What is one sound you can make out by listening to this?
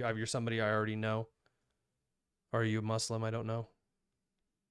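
A young man speaks calmly and closely into a microphone, in short phrases with pauses.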